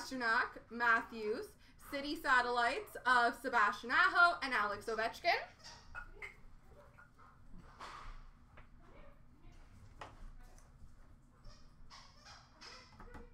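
Cards and small plastic cases click and rustle as they are handled.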